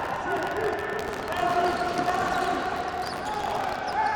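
A ball is kicked on a hard court.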